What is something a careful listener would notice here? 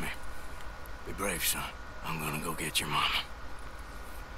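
A man speaks in a low, gentle voice.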